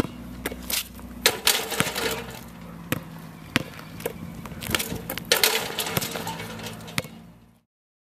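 A basketball bounces and thuds against a backboard outdoors.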